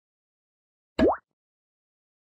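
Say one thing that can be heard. A short rising game sound effect plays.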